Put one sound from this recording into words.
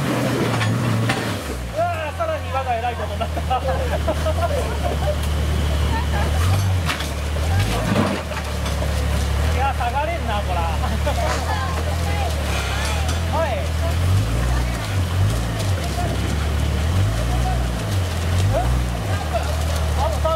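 An off-road vehicle's engine rumbles low and revs unevenly as it crawls over rocks.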